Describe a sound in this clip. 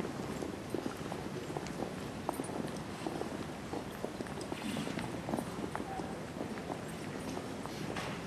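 Footsteps of several men march in step on stone paving.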